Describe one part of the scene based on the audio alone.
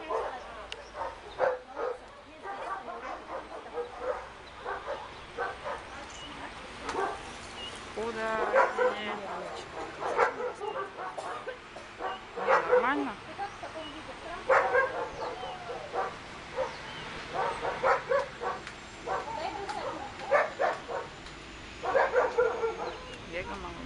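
A man calls out short commands to a dog outdoors.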